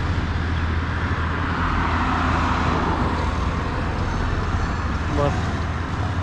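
Cars drive past on a road.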